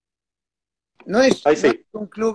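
A middle-aged man speaks through an online call.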